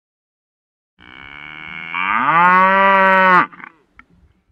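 A cow moos loudly.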